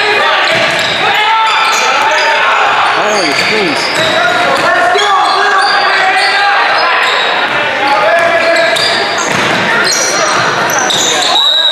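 Sneakers squeak sharply on a hardwood floor in an echoing gym.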